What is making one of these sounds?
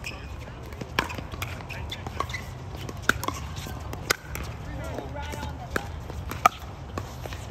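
Paddles strike a plastic ball with sharp pops, back and forth.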